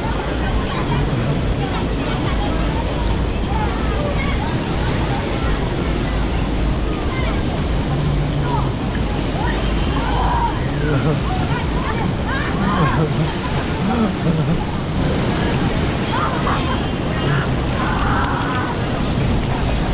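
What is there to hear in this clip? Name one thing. A crowd of children shouts and chatters outdoors.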